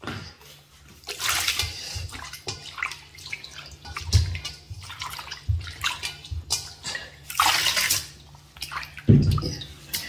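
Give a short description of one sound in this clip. Water swishes as hands rub around inside a metal bowl.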